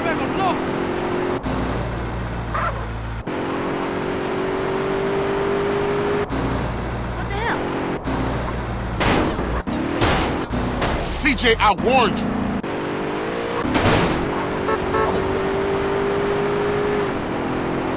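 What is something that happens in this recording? A car engine hums steadily and rises in pitch as it speeds up.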